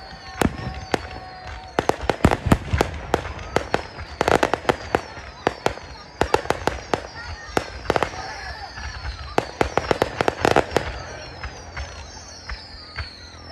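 Fireworks crackle and pop in rapid bursts.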